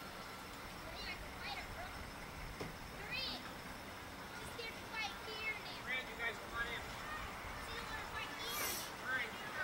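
Children shout and chatter nearby outdoors.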